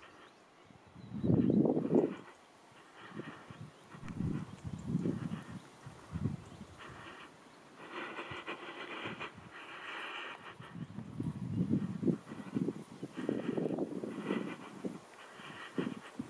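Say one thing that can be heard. A deer walks through dry brush, twigs rustling and snapping underfoot.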